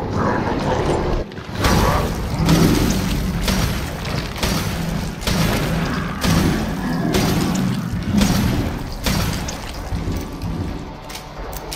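A monster snarls and shrieks.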